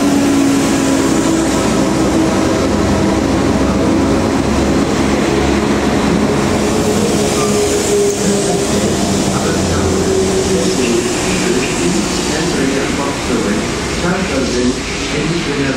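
A diesel train engine hums and drones loudly close by.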